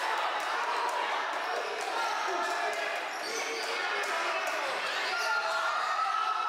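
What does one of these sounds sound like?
A basketball bounces on a hard floor.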